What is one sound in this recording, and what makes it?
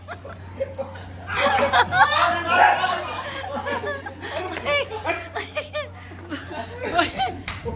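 Several men shout and laugh excitedly close by.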